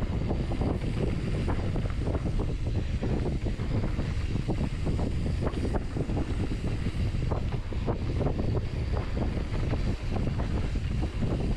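Wind rushes loudly past a moving bike.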